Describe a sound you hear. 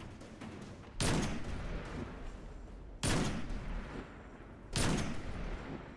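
A rifle fires single loud shots that echo.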